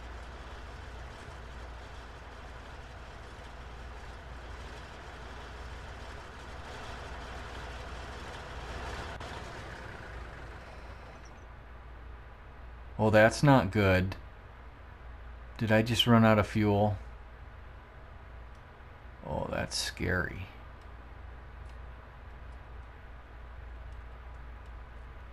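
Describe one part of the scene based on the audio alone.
A tractor engine idles with a low, steady hum.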